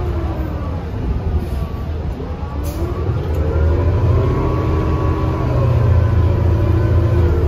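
A bus engine hums low and rises as the bus speeds up.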